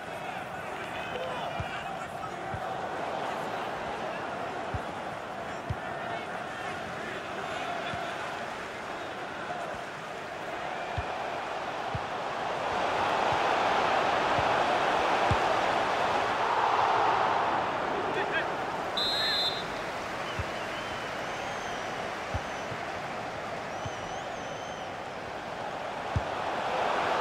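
A large stadium crowd murmurs steadily and swells into a loud roar.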